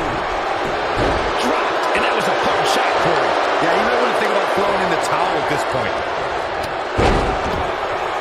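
Heavy thuds ring out as wrestlers slam onto the mat.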